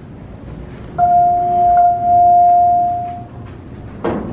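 An elevator chime rings with a steady tone.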